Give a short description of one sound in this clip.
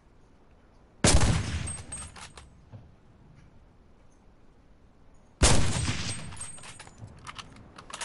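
A rifle fires a loud shot that echoes away across open land.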